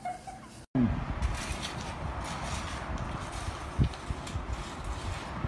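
A shovel scrapes and scoops loose bedding off a floor.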